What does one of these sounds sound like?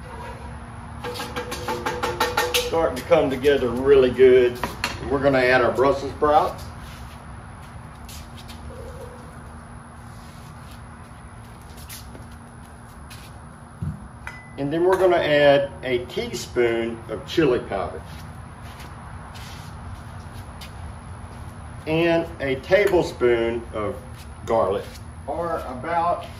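A man talks calmly and close by, outdoors.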